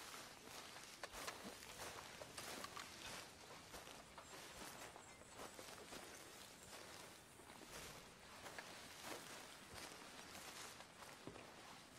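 Footsteps crunch on grass and dirt.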